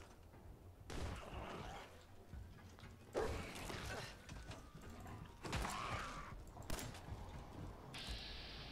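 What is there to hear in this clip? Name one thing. Gunshots crack loudly from a pistol.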